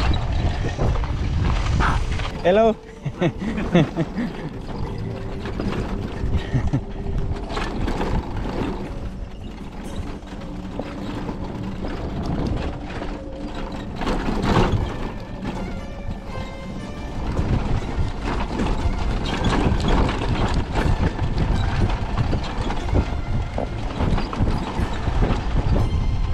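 Tyres crunch and rumble over a rough dirt track.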